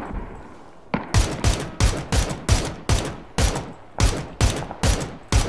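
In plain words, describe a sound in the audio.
Single rifle shots crack in quick succession.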